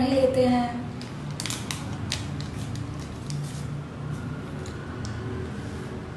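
A wrapper crinkles and rustles.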